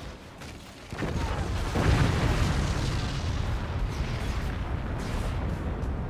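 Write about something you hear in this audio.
A huge blast booms and rumbles.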